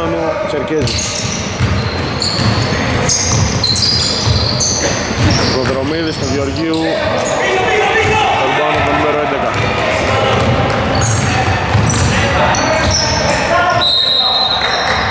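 Sneakers squeak sharply on a hardwood court in an echoing hall.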